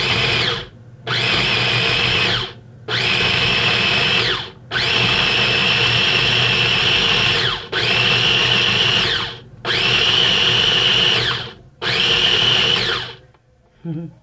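A blender whirs loudly in short bursts.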